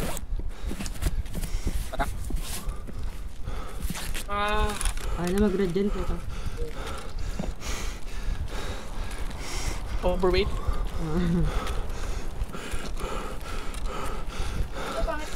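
Footsteps crunch on gravel and dirt at a steady walking pace.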